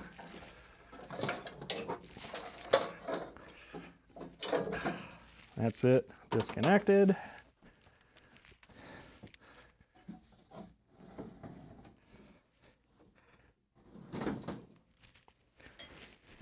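Metal parts clank and knock.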